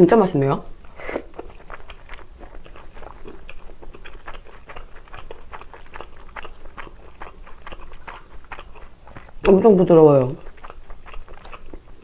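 A young woman chews and slurps food close to a microphone.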